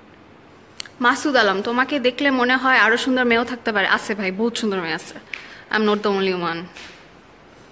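A young woman speaks calmly and close to the microphone.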